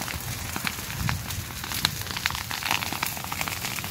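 Men beat at burning grass with branches.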